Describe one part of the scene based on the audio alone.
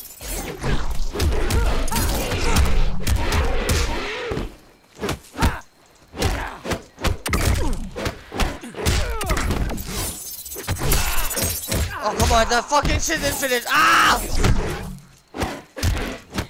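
Fighters grunt and punches thud.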